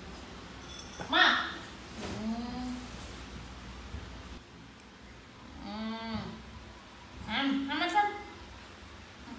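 A woman speaks softly and coaxingly nearby.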